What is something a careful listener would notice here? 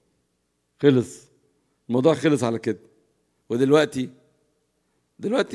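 An older man speaks with animation into a microphone, in short bursts with pauses.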